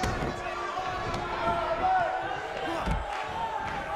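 A body slams heavily onto a wrestling ring mat with a thud.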